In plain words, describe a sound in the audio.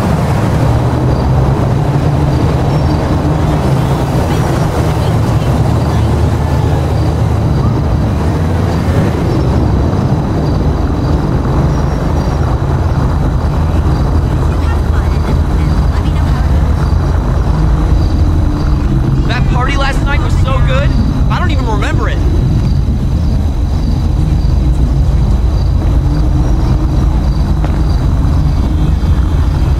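Cars drive past on a nearby street with a steady low rumble.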